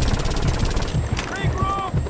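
A machine gun fires in rapid bursts.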